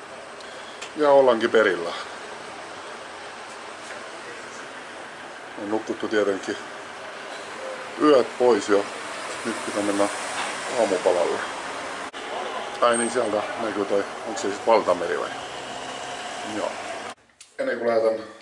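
A man speaks calmly, close to the microphone.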